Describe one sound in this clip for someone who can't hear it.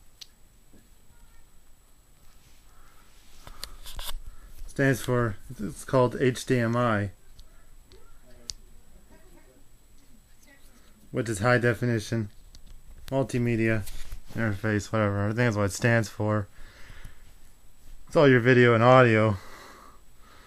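A cable rustles softly as it is handled.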